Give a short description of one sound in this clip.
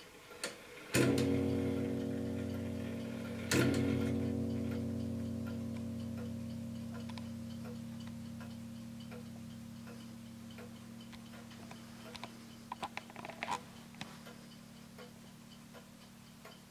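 A clock strikes a ringing chime that slowly fades.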